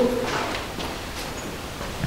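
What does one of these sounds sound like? Footsteps crunch on a debris-strewn floor.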